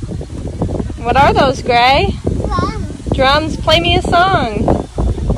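A young child squeals and babbles excitedly close by.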